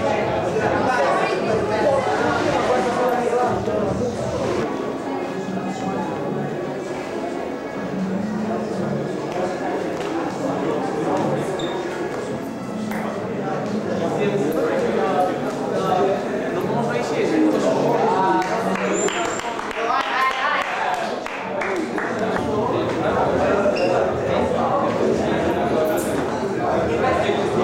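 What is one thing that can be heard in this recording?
A crowd of young people chatters indoors.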